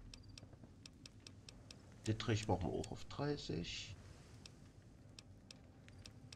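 Game menu clicks tick softly and repeatedly.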